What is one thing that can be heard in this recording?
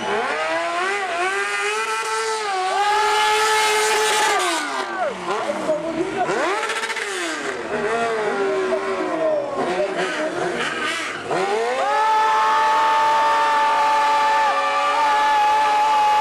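A motorcycle engine revs loudly, its pitch rising and falling.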